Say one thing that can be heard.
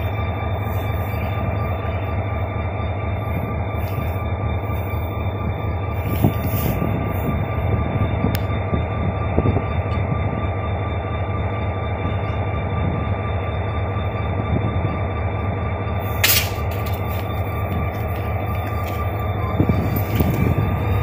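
A diesel locomotive engine rumbles and hums steadily close by.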